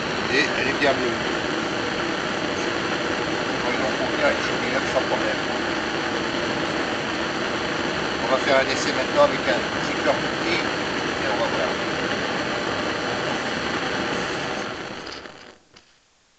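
A gas burner roars steadily with a strong flame.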